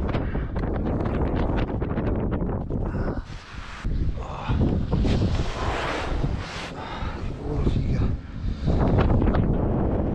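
Snow crunches under a body and gloved hands.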